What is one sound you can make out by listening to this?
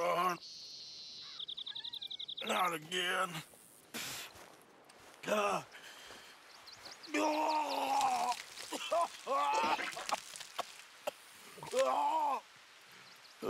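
A man mutters and talks to himself in a low, rough voice.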